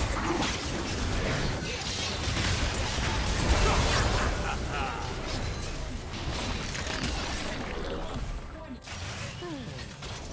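Magic blasts, slashes and hits crackle and thump in a fast, chaotic fight.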